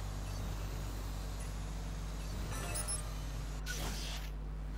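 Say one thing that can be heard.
A small drone buzzes with a steady whirring hum.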